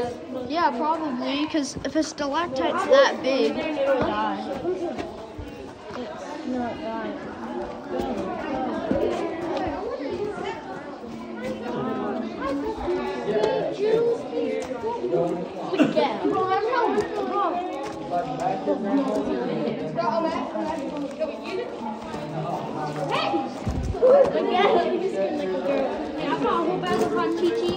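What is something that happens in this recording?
A crowd of young people talks and shouts close by.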